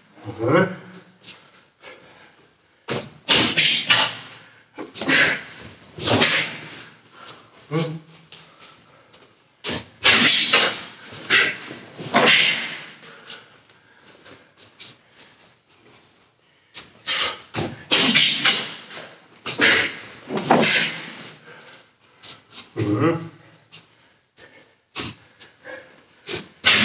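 A middle-aged man speaks loudly and with animation in an echoing room.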